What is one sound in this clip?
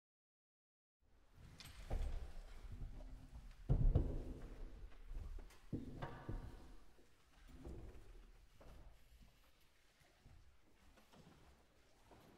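An audience applauds in a large, echoing hall.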